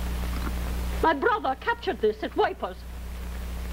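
An old woman speaks with animation.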